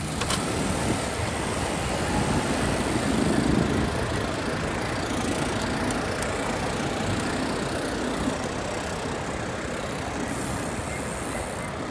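Car engines and tyres hum on a nearby road.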